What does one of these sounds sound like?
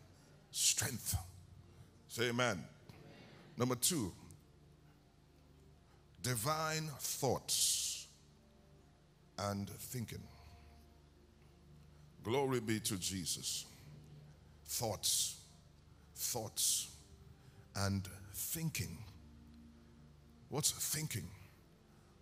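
A man preaches with animation into a microphone over loudspeakers in a large echoing hall, in short bursts with pauses.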